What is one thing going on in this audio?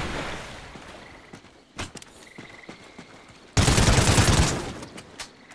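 A rifle fires a loud, rapid burst.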